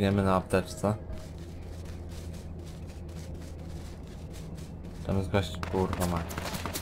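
Footsteps swish through grass at a steady walk.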